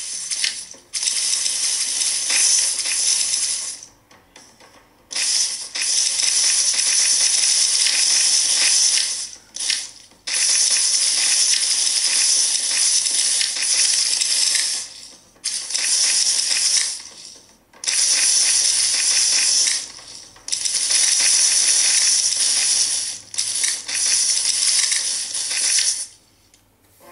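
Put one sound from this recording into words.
A handheld game plays rapid, crackling shooting sounds in bursts.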